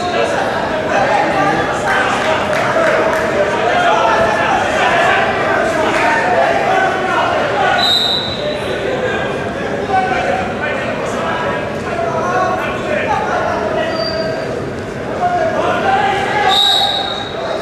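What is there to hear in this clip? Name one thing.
A crowd of men shouts and cheers loudly in a large echoing hall.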